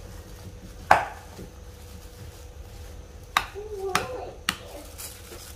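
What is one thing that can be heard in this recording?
A spoon knocks against a glass bowl.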